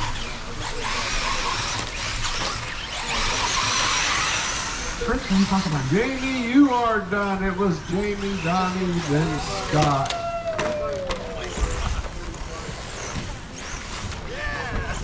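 Electric radio-controlled short course trucks whine as they race around a dirt track.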